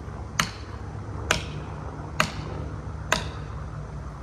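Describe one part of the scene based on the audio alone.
A sledgehammer strikes a metal wedge with sharp ringing blows.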